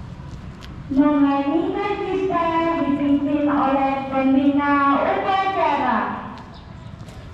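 A man speaks into a microphone over a loudspeaker outdoors.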